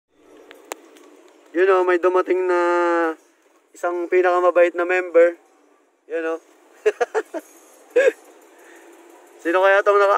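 Rain patters on a car windshield.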